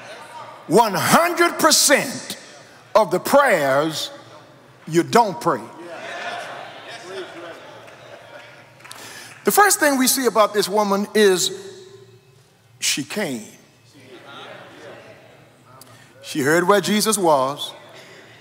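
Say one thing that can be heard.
An older man preaches with animation into a microphone, his voice ringing through a large hall.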